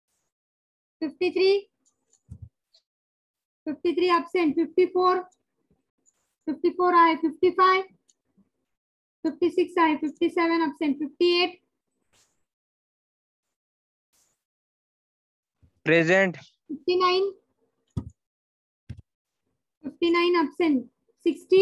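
A woman speaks calmly close by in short phrases with pauses.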